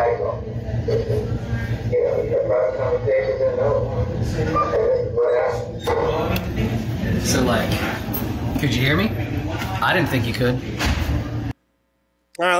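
A man speaks in a muffled, noisy recording played over loudspeakers.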